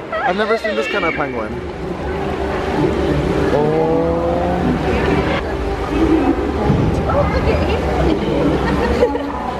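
Water splashes and sloshes as penguins swim close by.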